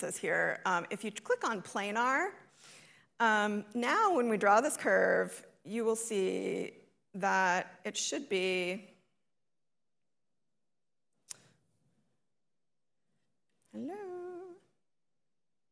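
A woman speaks calmly into a microphone, explaining.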